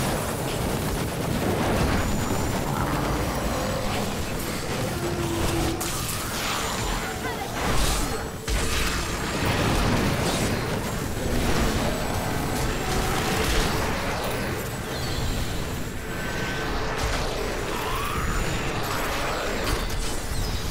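Fiery blasts and explosions crackle and boom without pause.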